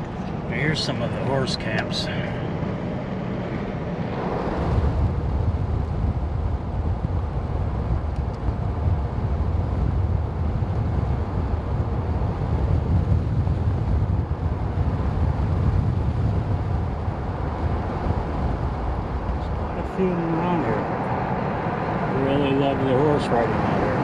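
A car engine hums steadily with road noise from inside the car.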